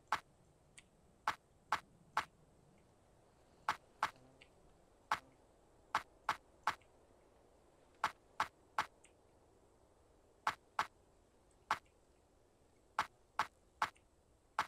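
Short footsteps tap on soft ground at an uneven pace.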